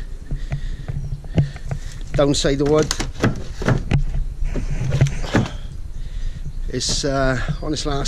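Footsteps thud on wooden steps and decking.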